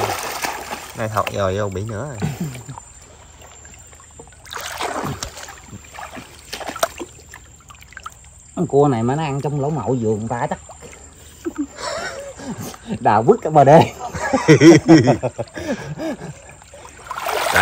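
Water splashes softly around people wading.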